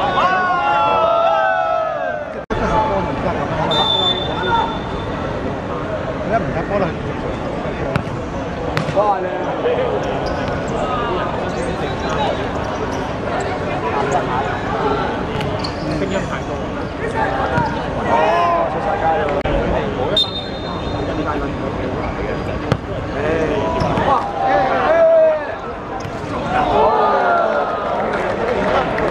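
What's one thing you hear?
A crowd of young men chatters and calls out outdoors.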